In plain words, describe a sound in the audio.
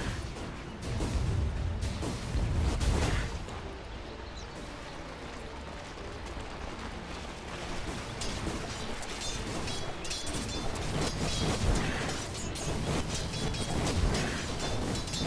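Fantasy battle sounds of spells blasting and weapons striking ring out.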